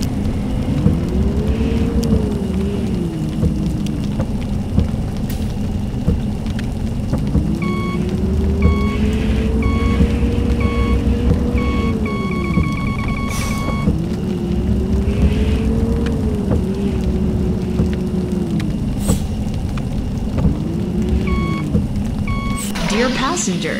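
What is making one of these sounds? A bus engine rumbles and its pitch rises and falls as it moves.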